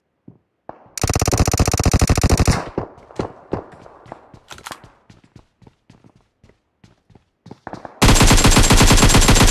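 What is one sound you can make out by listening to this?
Rapid automatic gunfire rattles in a video game.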